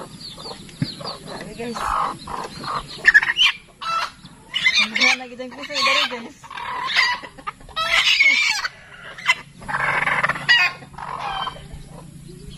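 A young woman talks nearby with animation.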